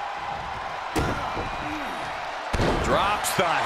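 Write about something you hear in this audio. A heavy body slams down onto the ring mat.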